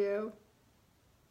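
A woman speaks brightly close to the microphone.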